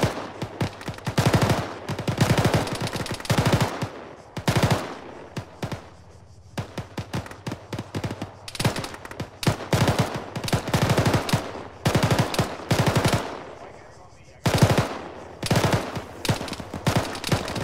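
A heavy machine gun fires in rapid bursts, with brief pauses between them.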